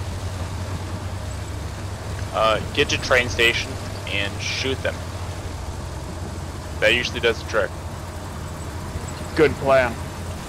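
A truck engine rumbles low as the truck drives along a road.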